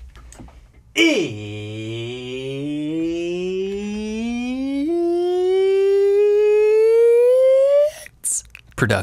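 A man sings one long, loud note that slowly rises in pitch, close by.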